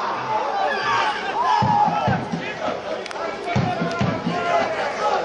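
Young men shout and cheer together outdoors.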